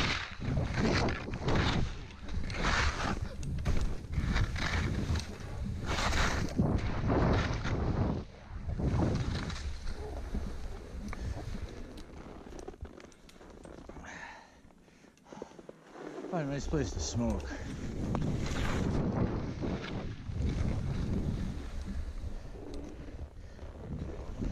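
Skis hiss and swish through deep powder snow.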